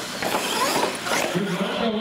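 A toy car clatters as it lands hard.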